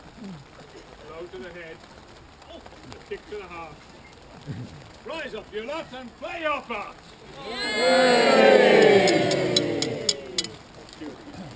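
A man speaks loudly outdoors to a crowd.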